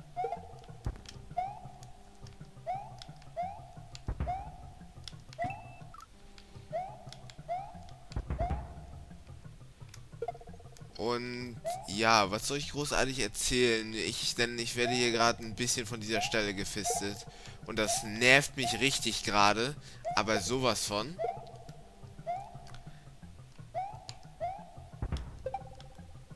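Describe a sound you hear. Cheerful electronic game music plays with short bouncy notes.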